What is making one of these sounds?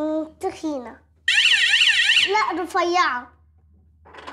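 A young child speaks excitedly.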